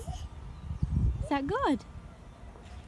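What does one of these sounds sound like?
A baby squeals with delight close by.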